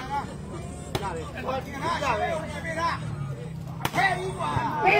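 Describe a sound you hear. A ball thuds as players hit it.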